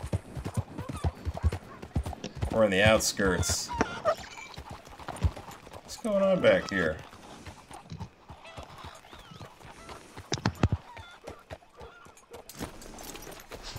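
A horse's hooves clop on a dirt road.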